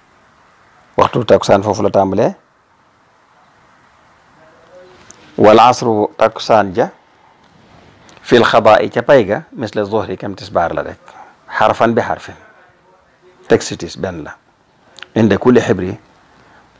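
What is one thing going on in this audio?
An elderly man speaks calmly in short phrases with pauses.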